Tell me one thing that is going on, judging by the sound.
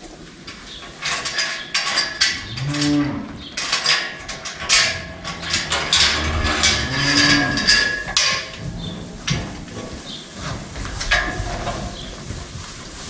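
Hay rustles and scrapes as a man forks it.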